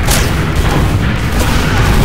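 A flamethrower roars in a short burst.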